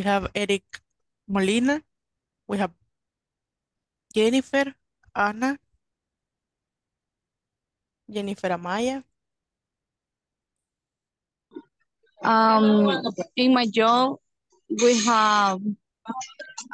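A young woman speaks calmly in short phrases over an online call, with pauses between them.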